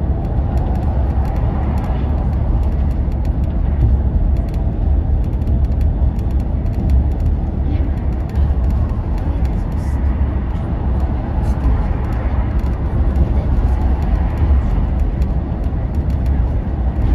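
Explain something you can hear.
A vehicle engine rumbles steadily from inside the cab.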